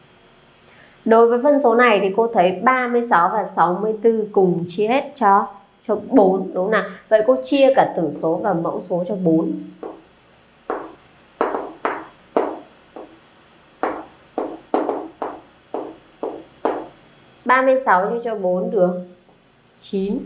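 A young woman speaks clearly and calmly, close to a microphone.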